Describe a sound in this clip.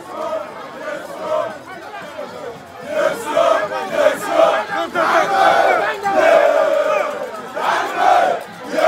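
A large crowd sings and chants loudly outdoors.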